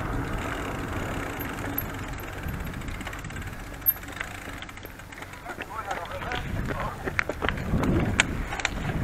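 Wind rushes past the microphone as a bicycle rolls along.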